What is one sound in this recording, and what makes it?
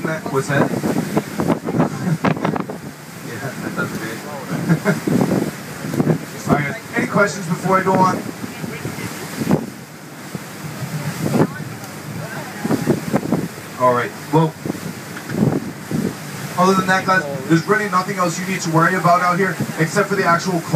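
Wind blows outdoors on open water.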